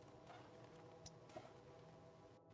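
A heavy metal safe door clicks and swings open.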